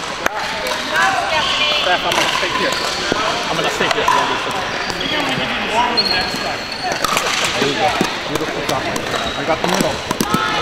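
Many people talk and chatter in a large echoing hall.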